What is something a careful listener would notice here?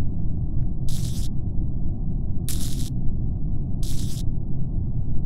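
Electric wires snap into place with short buzzing clicks.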